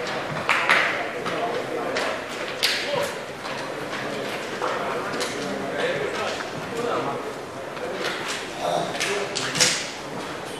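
Players shout to each other across an open outdoor pitch.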